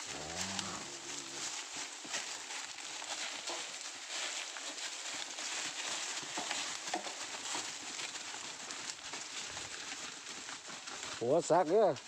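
Hooves crunch and rustle through dry leaves as cattle walk past.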